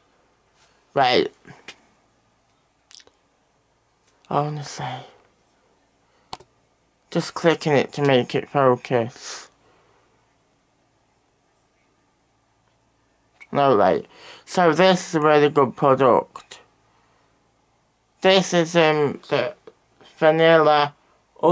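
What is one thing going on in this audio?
A young man speaks calmly and close up, in short bursts with pauses.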